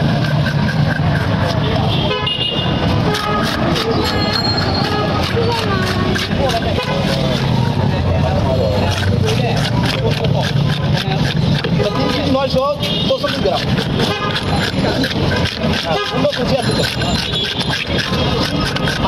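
A metal scraper rasps quickly over fish scales.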